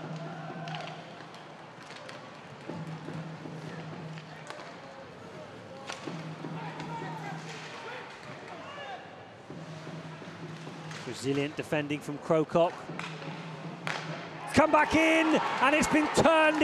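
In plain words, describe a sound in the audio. Ice skates scrape and swish across the ice.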